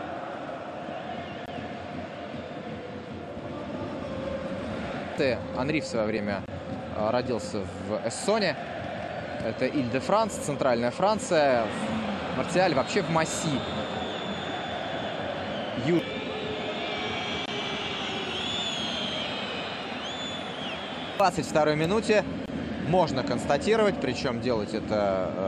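A large crowd murmurs and chants steadily in an open stadium.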